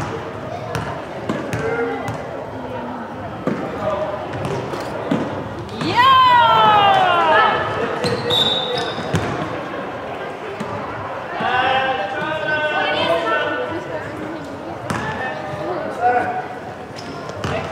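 A basketball bounces on a hard court, echoing in a large hall.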